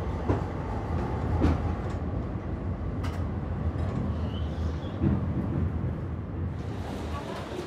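A tram rumbles along with a low, steady drone.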